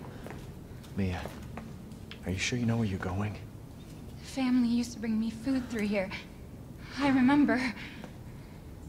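A young woman speaks in short bursts, close to a microphone.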